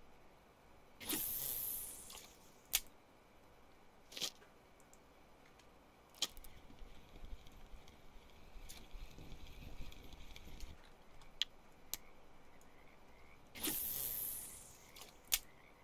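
A fishing rod swishes as a line is cast.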